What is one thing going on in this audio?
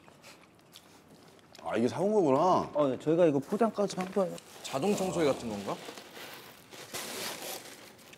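Cardboard rustles as a box is torn open.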